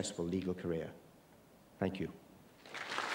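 A man speaks briefly into a microphone in a large hall.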